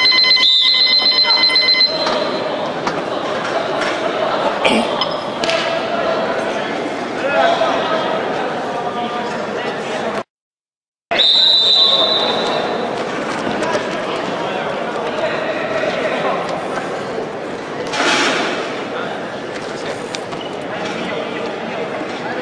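Men talk and call out in a large echoing hall.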